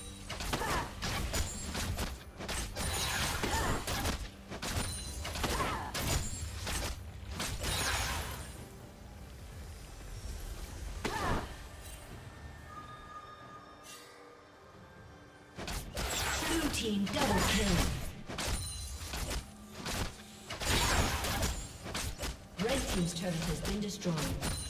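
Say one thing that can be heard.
Fighting sound effects clash and burst in quick bursts.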